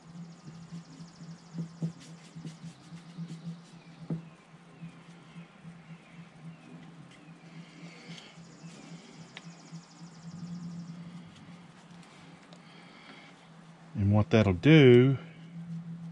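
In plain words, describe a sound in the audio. A pencil scratches softly on a hard carved surface.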